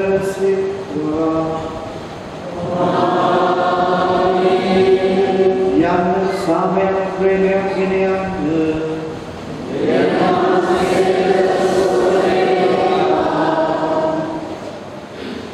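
An older man chants slowly into a microphone, heard through loudspeakers in an echoing hall.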